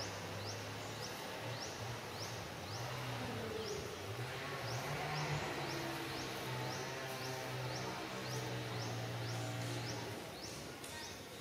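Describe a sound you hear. Dry leaves rustle softly under a monkey's feet.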